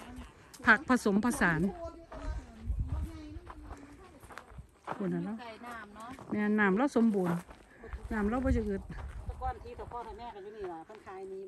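A woman talks with animation outdoors.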